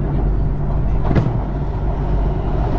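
A passing train rushes by in the opposite direction.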